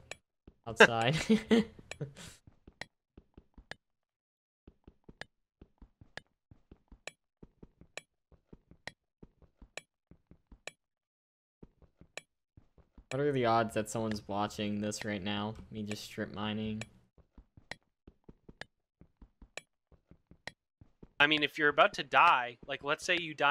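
A pickaxe chips at stone with quick, repeated knocks.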